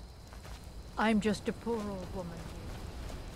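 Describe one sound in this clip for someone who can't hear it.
An elderly woman speaks briefly and calmly, close by.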